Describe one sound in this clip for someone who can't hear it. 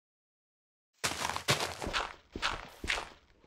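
An axe chops rapidly and loudly into earth.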